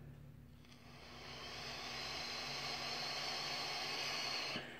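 A man draws air through a vaping device with a soft steady hiss.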